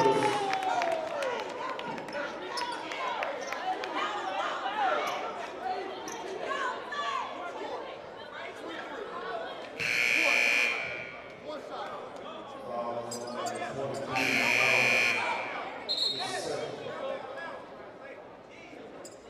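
A crowd murmurs and chatters in the stands.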